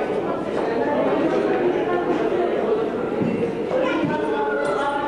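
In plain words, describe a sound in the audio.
A middle-aged woman speaks close by.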